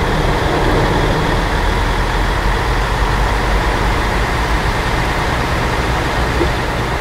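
Water splashes and churns around the wheels of a bus.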